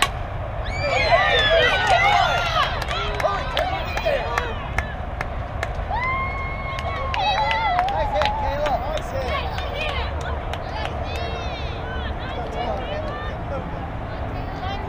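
Young girls shout and cheer outdoors.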